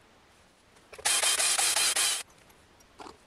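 A power drill whirs briefly as it drives screws.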